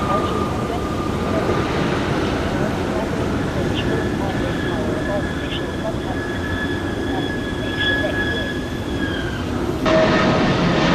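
A jet airliner's engines whine as it rolls along a runway.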